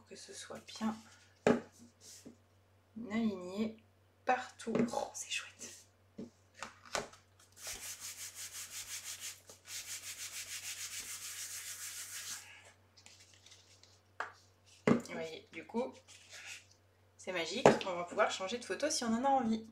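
A sheet of card rustles as it is handled.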